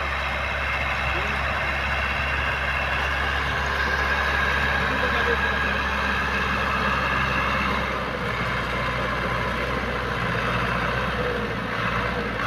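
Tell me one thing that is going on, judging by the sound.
A plough scrapes through soil.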